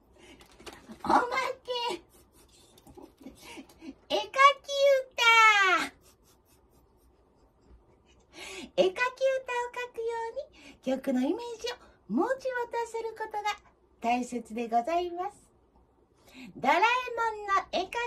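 A young woman sings nearby.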